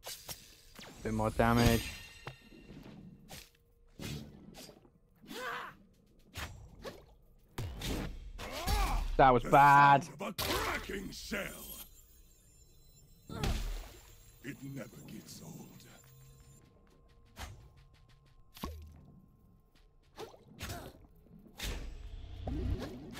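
Fiery whooshes burst out now and then.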